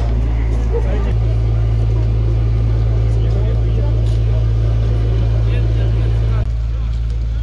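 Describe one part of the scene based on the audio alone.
A fire engine idles with a low rumble.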